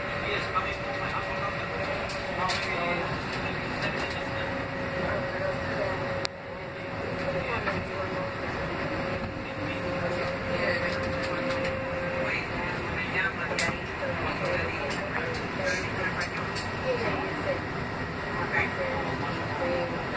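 A subway train rumbles and clatters along the tracks.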